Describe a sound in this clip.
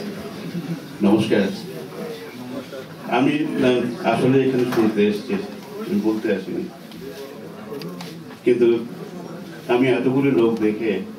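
A man speaks calmly into a microphone, heard through a loudspeaker.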